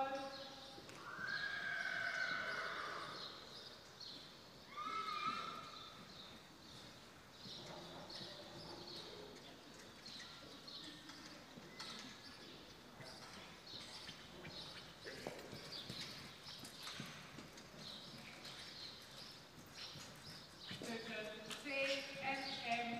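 A horse's hooves trot softly on sand in a large echoing hall.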